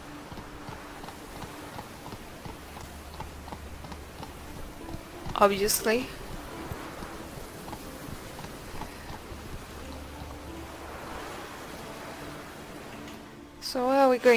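Horse hooves clop on rocky ground.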